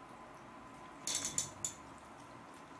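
A young woman eats noodles with loud slurping close to a microphone.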